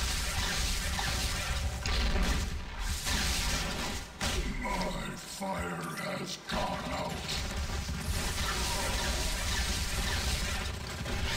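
Energy blasts crackle and zap in rapid bursts.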